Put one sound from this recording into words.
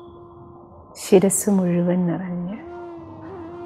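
A woman speaks calmly and warmly, close to a microphone.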